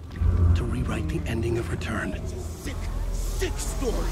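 A man speaks with excitement nearby.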